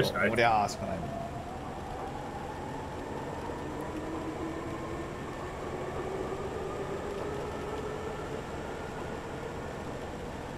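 An electric train motor whines and slowly rises in pitch.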